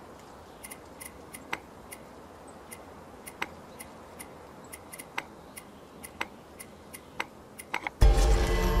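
Game tokens click softly as they are selected.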